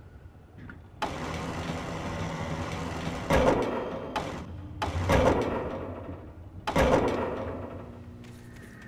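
A machine motor whirs and grinds.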